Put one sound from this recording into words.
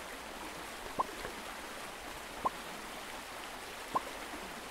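Short rising electronic blips sound now and then.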